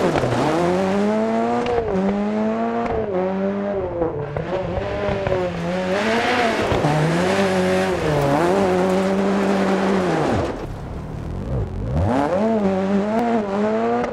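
Gravel sprays and crunches under sliding tyres.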